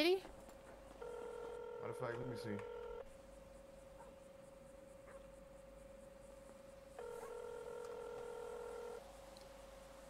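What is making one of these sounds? A phone call rings out in short repeated tones.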